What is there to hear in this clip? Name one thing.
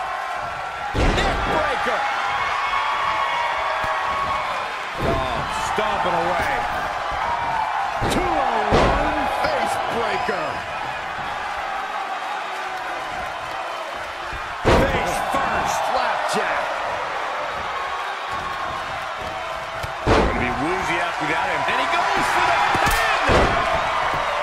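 Heavy bodies slam onto a wrestling ring mat with loud thuds.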